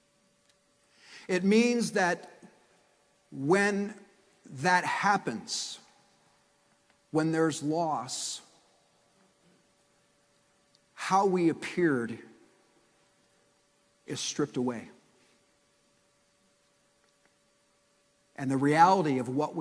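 A middle-aged man preaches with animation through a microphone, in short bursts with pauses.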